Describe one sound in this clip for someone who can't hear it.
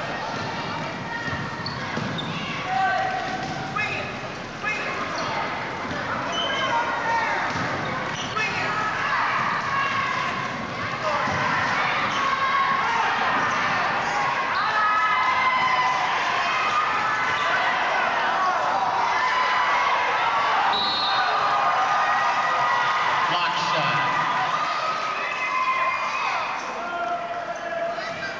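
Sneakers squeak sharply on a wooden court, echoing in a large hall.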